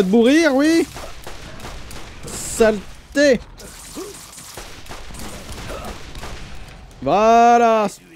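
A man speaks with animation close to a microphone, with drawn-out exclaiming sounds.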